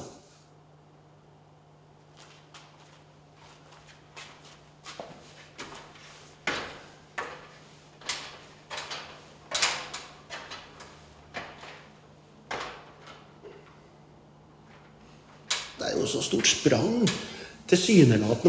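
Small tools click and tap on a workbench.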